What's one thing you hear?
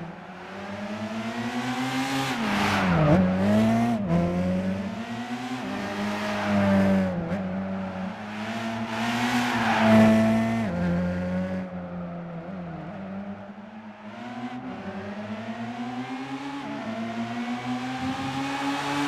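A car engine revs hard, rising and falling in pitch as the car shifts gears.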